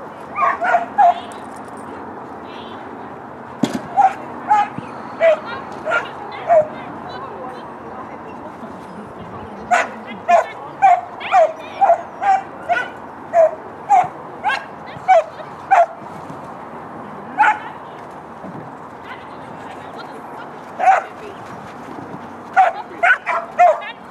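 A dog barks sharply again and again nearby.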